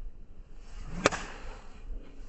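A golf driver strikes a ball with a sharp crack.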